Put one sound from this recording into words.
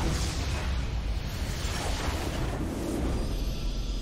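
A large structure explodes with a deep rumbling boom.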